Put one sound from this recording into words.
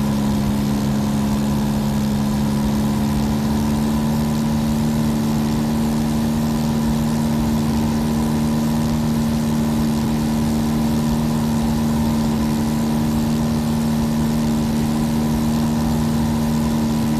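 A small propeller plane's engine drones steadily from inside the cockpit.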